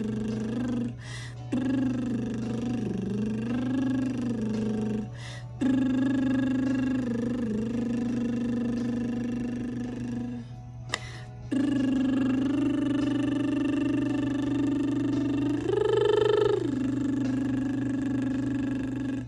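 A young woman hums long, steady notes close by, pausing briefly between them.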